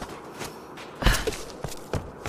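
A figure lands with a thud on wooden planks.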